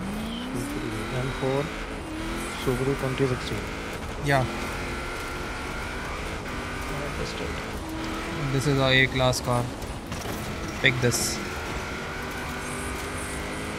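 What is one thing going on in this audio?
Gravel crunches under a car's tyres.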